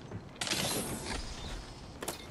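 A metal crate opens with a loud mechanical hiss.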